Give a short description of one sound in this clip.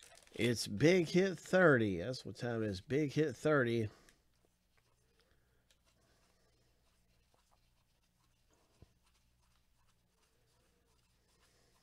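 Trading cards slide and flick softly against each other.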